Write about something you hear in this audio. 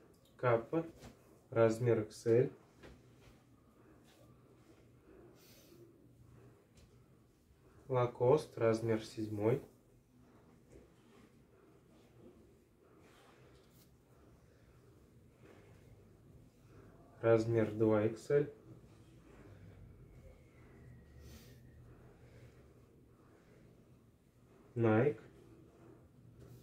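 Fabric rustles softly as shirts are laid down and smoothed flat.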